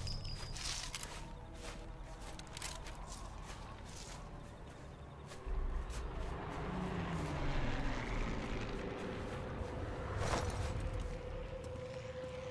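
Clothing and grass rustle softly.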